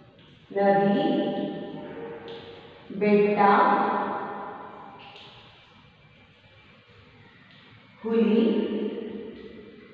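A woman speaks slowly and clearly nearby, in an echoing room.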